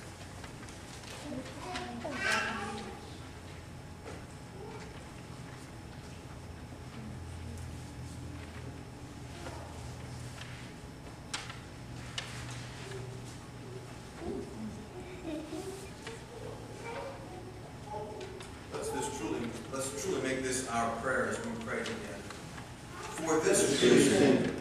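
An elderly man speaks calmly into a microphone, his voice echoing in a large room.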